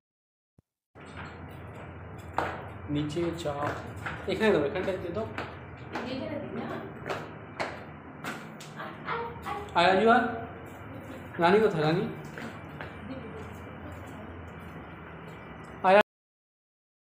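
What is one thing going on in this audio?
Footsteps tap down concrete stairs.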